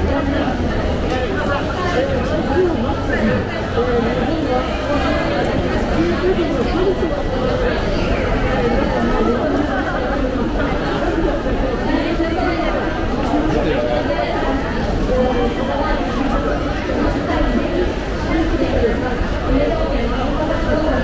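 Many footsteps shuffle and tap on a hard floor.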